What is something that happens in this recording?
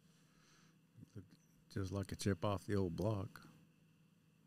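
A middle-aged man speaks briefly into a close microphone.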